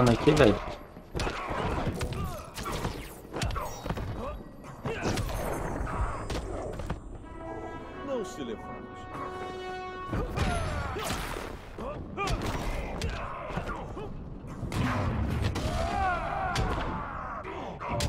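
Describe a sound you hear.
Heavy punches and kicks land with loud thuds and smacks.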